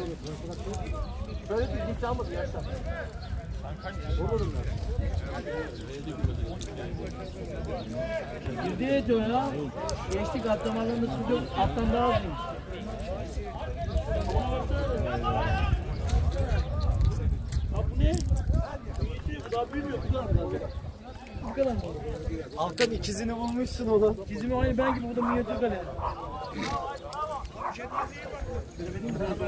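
Men in a crowd of onlookers talk and call out close by, outdoors.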